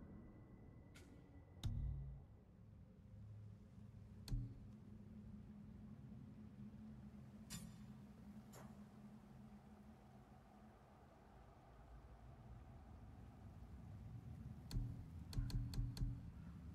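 Short soft menu clicks tick now and then.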